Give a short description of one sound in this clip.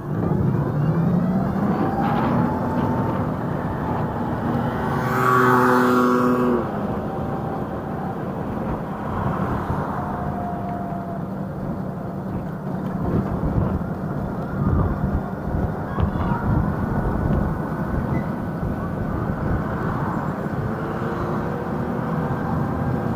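Wind rumbles steadily past while riding.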